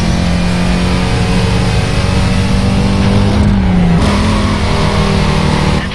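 A racing car engine roars steadily at high speed, rising in pitch and briefly dipping as the gear changes.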